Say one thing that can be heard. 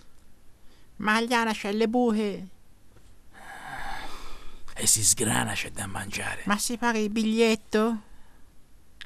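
A young boy speaks softly, close by.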